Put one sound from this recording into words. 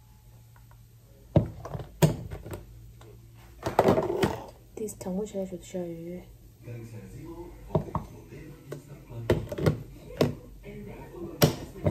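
A plastic lid clicks onto a container.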